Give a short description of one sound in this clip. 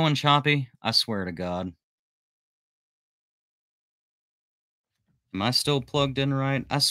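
A man speaks calmly and close into a microphone, pausing in silence between phrases.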